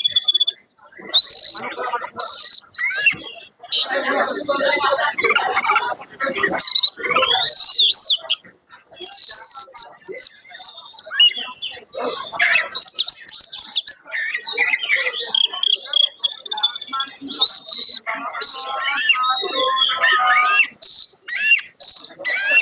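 An oriental magpie-robin sings loud, fast, varied phrases.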